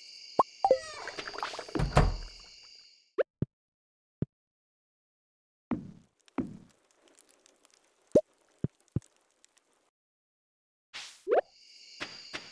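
A door opens and closes.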